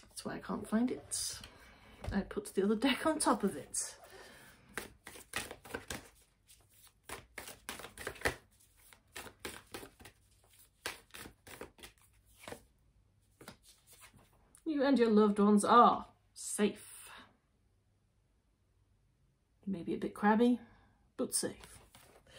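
A woman speaks calmly and closely into a microphone.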